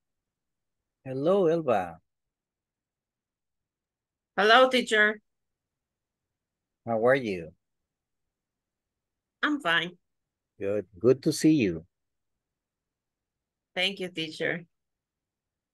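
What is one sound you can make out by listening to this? A middle-aged man speaks cheerfully in short bursts over an online call.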